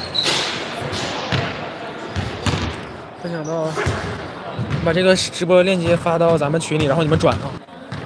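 Shoes thud and squeak on a wooden floor nearby.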